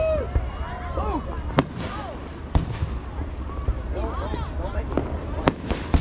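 Fireworks whistle as they shoot up into the sky.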